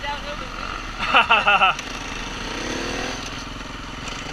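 Other dirt bikes rev nearby.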